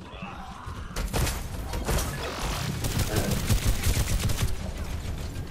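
A heavy video game shotgun fires booming blasts.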